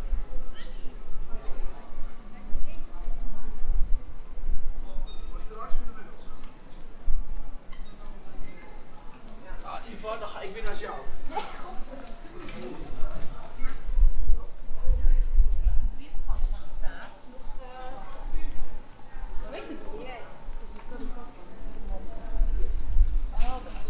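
People talk in the distance.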